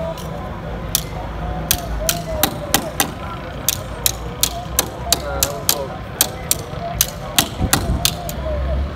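Metal taps sharply and repeatedly on metal.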